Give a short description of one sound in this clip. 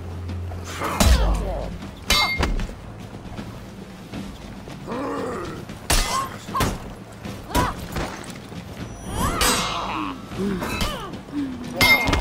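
Steel blades clash and ring in a sword fight.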